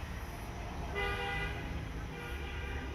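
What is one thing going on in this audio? Music plays from loudspeakers.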